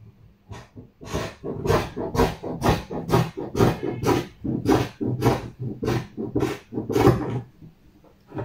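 Scissors snip through fabric in quick, repeated cuts.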